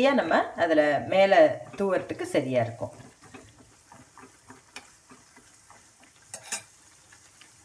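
A metal spoon scrapes and clinks against a small pan.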